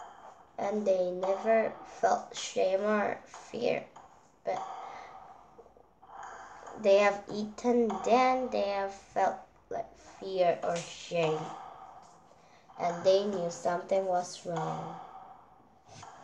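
A young girl reads aloud close to a microphone.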